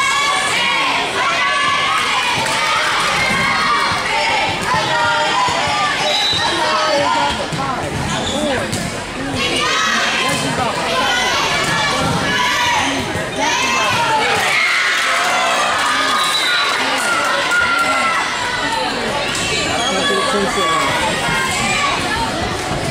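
Young girls shout and call to each other during a volleyball rally in an echoing gym.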